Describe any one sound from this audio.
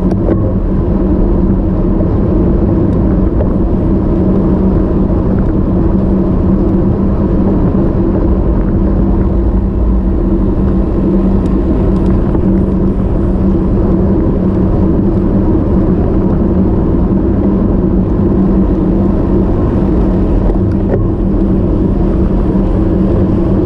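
Bicycle tyres hum steadily on smooth asphalt.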